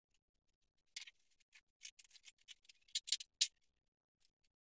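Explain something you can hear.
Metal tools clatter into a plastic box.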